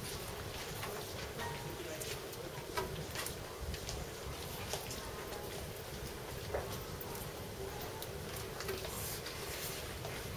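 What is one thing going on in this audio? Paper rustles softly as a man folds it.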